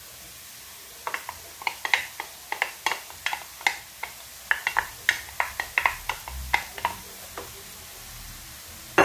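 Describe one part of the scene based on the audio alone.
Corn kernels patter as they spill into a metal pot.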